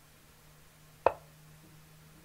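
A single sharp click of a chess move sounds from a computer.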